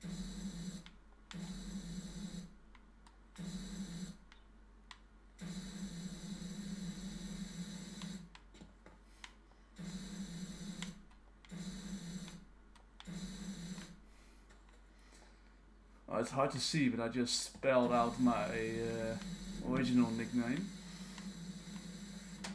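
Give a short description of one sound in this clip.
A pressure washer sprays water in short bursts with a steady hiss and hum.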